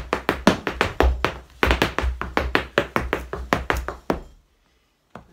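Hard shoes tap rapidly on a floor in a quick dance rhythm.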